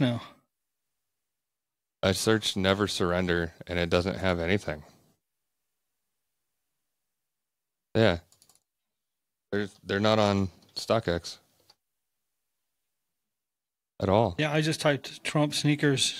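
A man talks calmly into a close microphone, in bursts with silent pauses.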